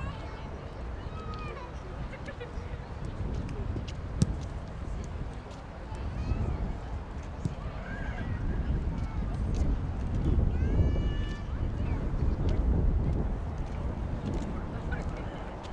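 A crowd of children chatters in the distance outdoors.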